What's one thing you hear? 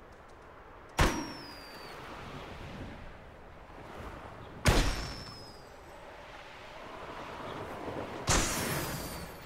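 Balloons burst with sharp pops.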